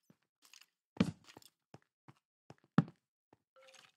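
A block thuds into place.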